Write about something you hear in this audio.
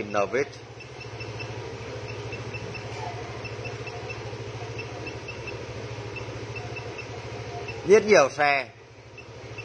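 A handheld electronic device gives short, soft, rapid beeps.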